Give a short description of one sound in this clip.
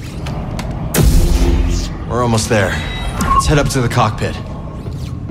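A lightsaber ignites and hums loudly.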